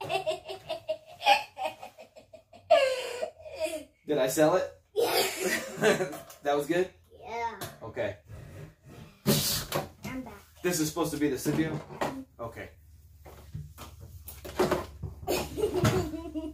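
A young boy laughs happily.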